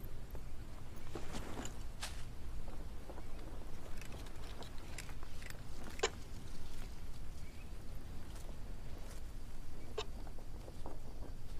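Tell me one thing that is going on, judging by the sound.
Leaves rustle and crumple as they are handled.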